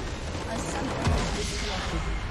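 A loud crash booms as a tower is destroyed.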